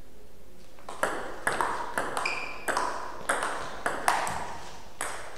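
A ping-pong ball clicks back and forth between paddles and table in a quick rally.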